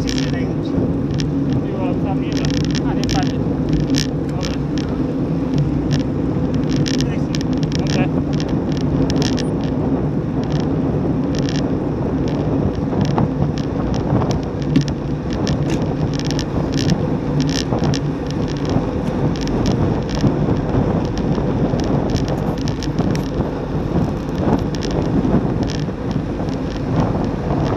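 Bicycle tyres hum steadily on asphalt.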